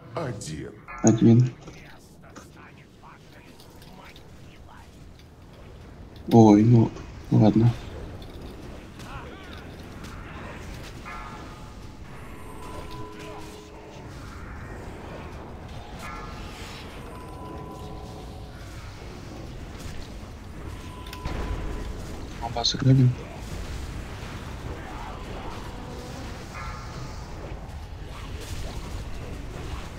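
Spell effects whoosh and crackle during a fantasy battle.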